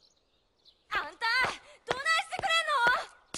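A young woman speaks coolly, close by.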